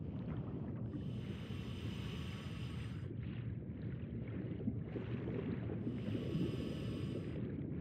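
Bubbles gurgle from a diver's breathing regulator.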